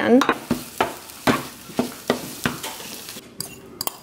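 A spatula scrapes eggs in a frying pan.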